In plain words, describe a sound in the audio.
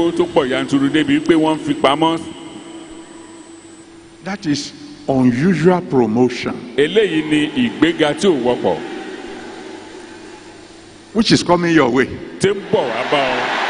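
A man speaks forcefully into a microphone in a large echoing hall.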